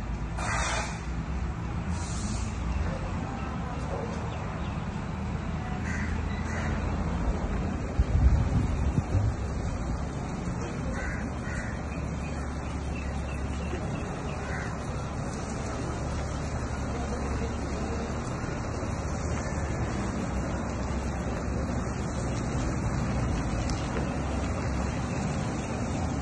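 A diesel truck engine rumbles steadily nearby.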